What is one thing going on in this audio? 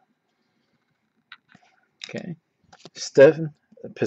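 Trading cards rustle and slide against each other as they are flipped by hand.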